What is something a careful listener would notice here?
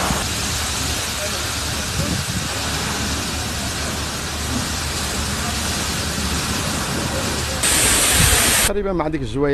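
A pump engine runs steadily.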